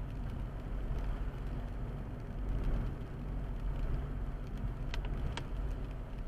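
Raindrops tap on a windscreen.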